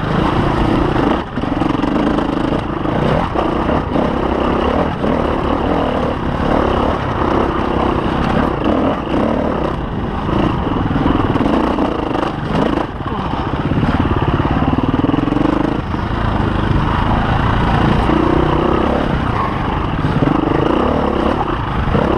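A dirt bike engine revs loudly up and down, heard up close.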